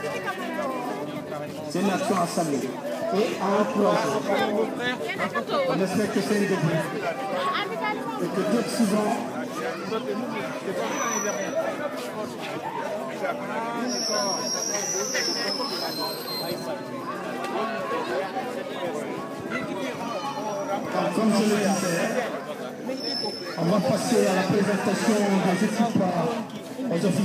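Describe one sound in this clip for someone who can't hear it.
A crowd of young men and women chatters nearby outdoors.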